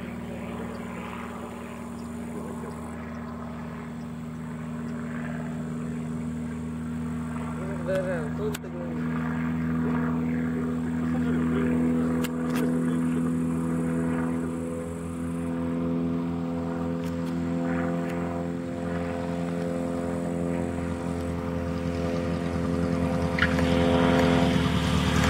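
A small propeller plane engine drones steadily as the plane approaches and grows louder.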